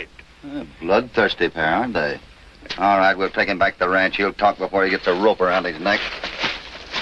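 A man speaks firmly, close by.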